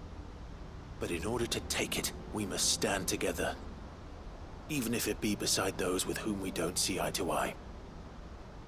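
A young man speaks calmly and earnestly.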